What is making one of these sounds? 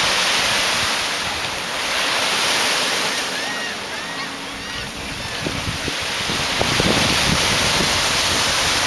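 Small waves wash over the shallows.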